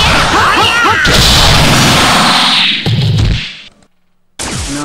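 A loud burst of energy roars and fades.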